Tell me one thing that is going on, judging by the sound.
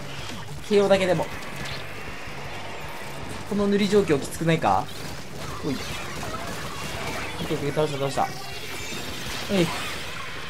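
Video game ink shots splatter and pop.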